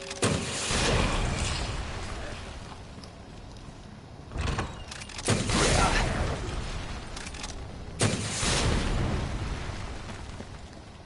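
Loud blasts boom and rumble.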